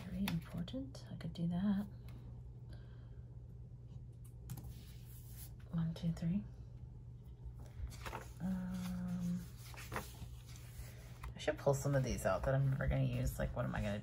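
Paper rustles and crinkles under handling.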